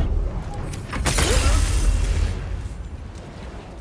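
A deep magical blast rumbles and roars.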